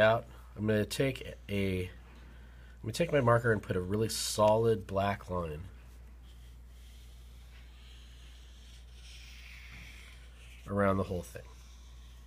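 A felt-tip marker scratches and squeaks across paper.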